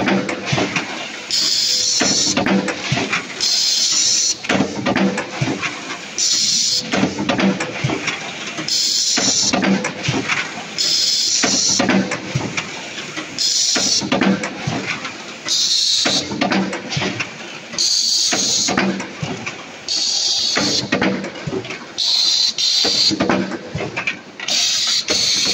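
Factory machinery hums and clatters all around.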